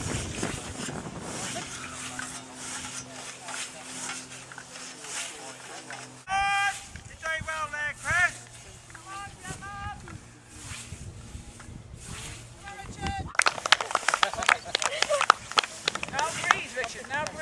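A scythe swishes through tall grass with steady strokes.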